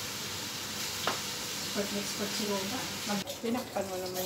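Food sizzles in a frying pan.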